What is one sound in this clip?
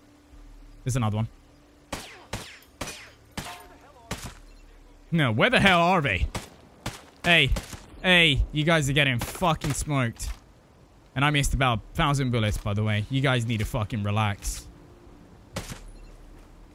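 A silenced rifle fires with short muffled cracks.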